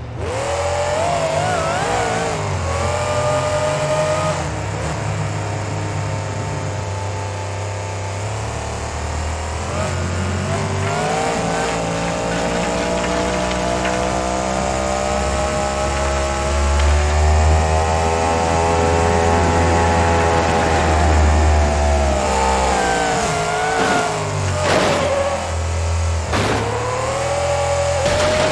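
A truck engine roars and its pitch rises and falls as it speeds up.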